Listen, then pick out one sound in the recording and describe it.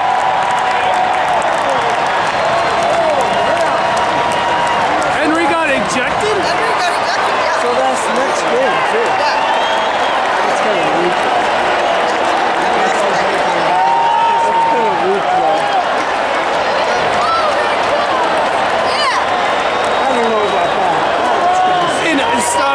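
A large stadium crowd chants and sings.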